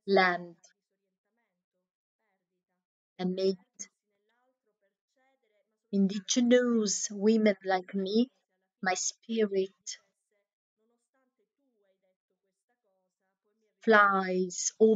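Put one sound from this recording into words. A woman speaks calmly with pauses, heard through an online call.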